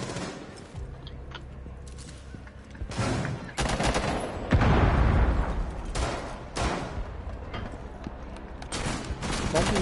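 Bullets splinter through wooden walls.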